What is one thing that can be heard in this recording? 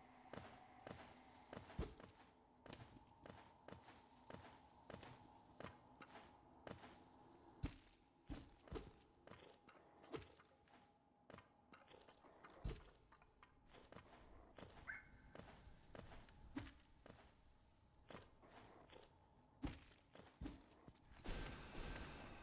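Footsteps and landing thuds from a game character tap repeatedly.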